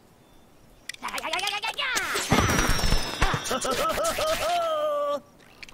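A magic spell bursts with a shimmering whoosh.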